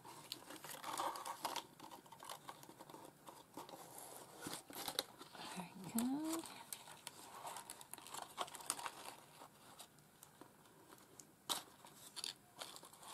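Paper rustles and crinkles as it is folded and handled close by.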